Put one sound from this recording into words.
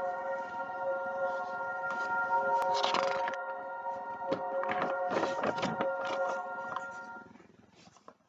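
Sheets of paper rustle as they are handled and turned.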